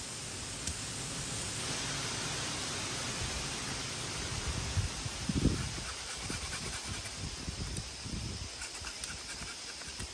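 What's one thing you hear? A knife chops at a bamboo stem.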